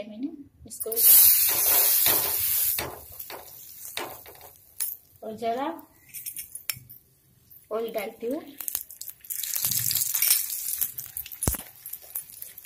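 A flatbread sizzles in a hot pan.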